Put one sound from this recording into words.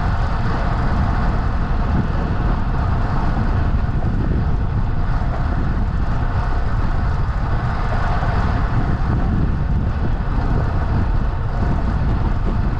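Tyres hum steadily over a rough paved path.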